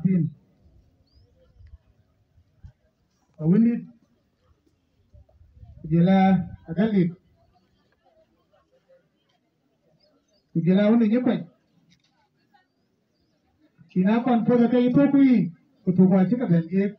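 A man speaks loudly to a crowd outdoors, in short phrases with pauses.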